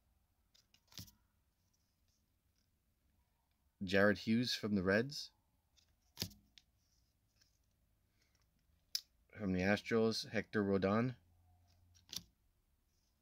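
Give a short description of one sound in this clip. Cardboard cards click softly as a hand handles them.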